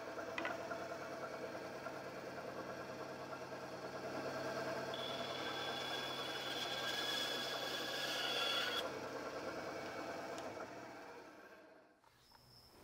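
A band saw hums and whines as it cuts through wood.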